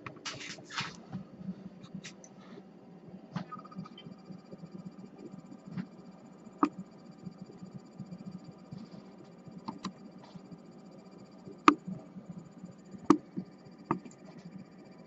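A glass flask clinks sharply now and then as it is handled.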